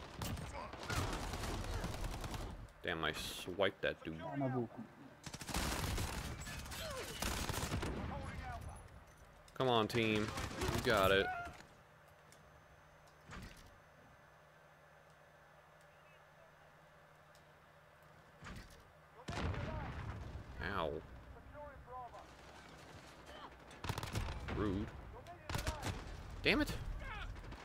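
Automatic gunfire rattles in short bursts.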